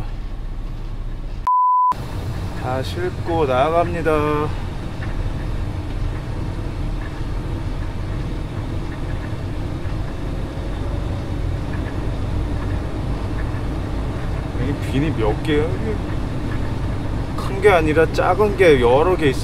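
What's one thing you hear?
A vehicle engine hums steadily at low speed.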